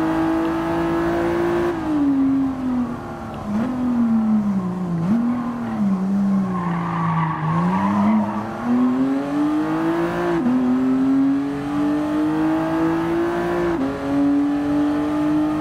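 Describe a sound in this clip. A car engine revs high, drops as the car brakes, then climbs again through the gears.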